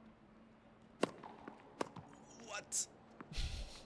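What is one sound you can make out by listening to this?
A tennis ball is struck with a sharp pop.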